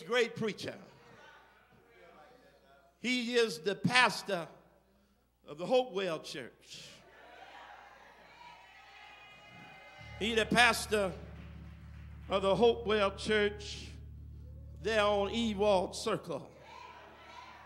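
A man speaks calmly into a microphone, heard over a loudspeaker in an echoing hall.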